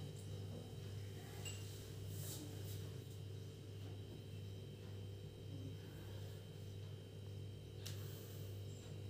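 Hands and bare feet shuffle softly on a hard floor.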